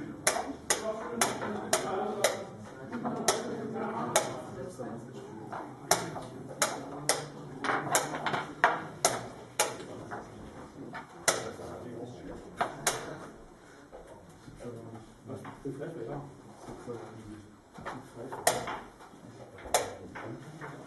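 A chess clock's buttons are struck with sharp clicks.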